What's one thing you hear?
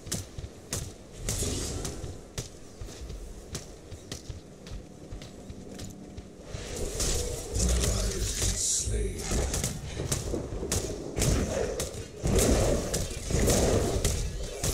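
Gunfire and blasts crack in rapid bursts.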